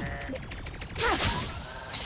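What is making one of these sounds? A blade swishes through the air.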